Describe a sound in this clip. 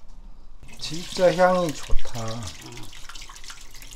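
Water pours and splashes into a metal strainer.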